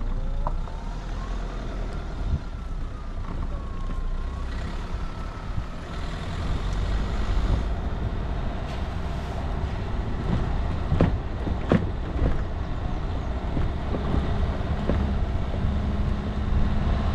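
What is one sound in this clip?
A vehicle engine rumbles low and steady as it drives slowly.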